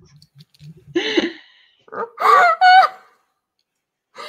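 Another young woman laughs over an online call.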